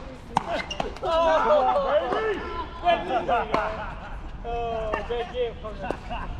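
Men call out and chatter across the courts.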